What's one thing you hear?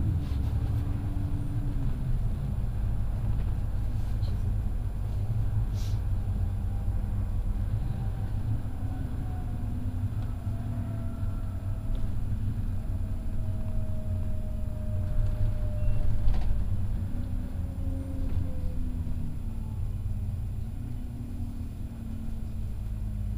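A bus engine rumbles steadily and changes pitch as it drives.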